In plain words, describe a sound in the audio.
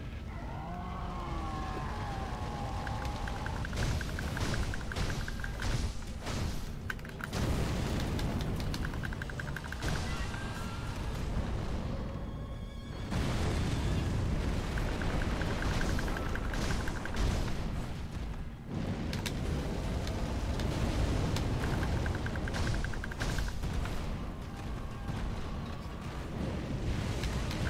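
Flames roar and crackle loudly throughout.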